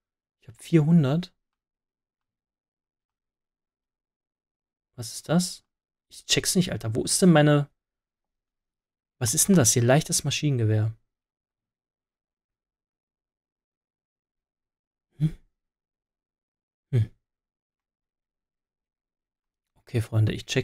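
A man talks calmly and close into a microphone, in short bursts with pauses.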